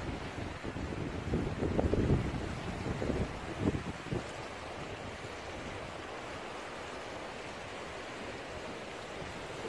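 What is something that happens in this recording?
Sea waves wash against rocks.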